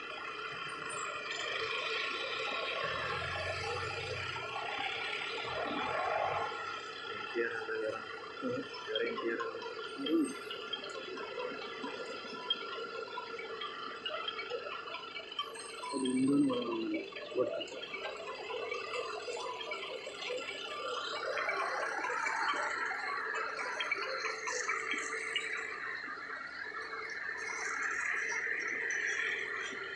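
A convoy of vehicles drives slowly past, engines humming and tyres rolling on the road.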